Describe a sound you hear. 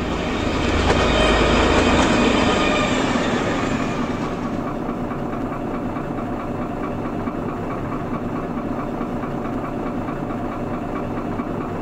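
A railway crossing bell rings in a steady rapid rhythm.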